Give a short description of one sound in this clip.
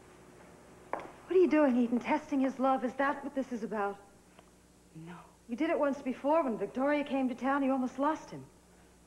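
A middle-aged woman speaks close by in a strained, tearful voice.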